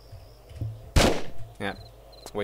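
A gunshot booms once and echoes.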